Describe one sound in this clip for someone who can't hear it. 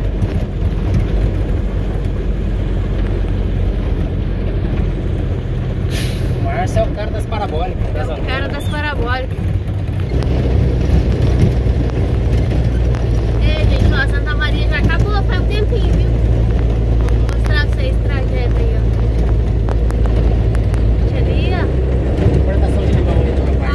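A vehicle rumbles steadily over a cobbled road.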